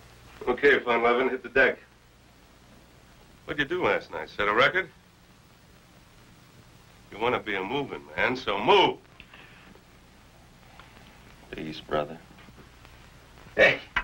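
A middle-aged man speaks calmly and quietly nearby.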